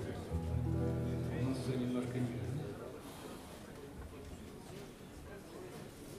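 A small jazz band plays a tune, with a walking double bass leading loudly at first.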